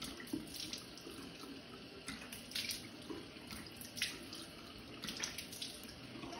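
A woman splashes water onto her face.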